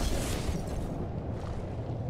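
A fire blast roars.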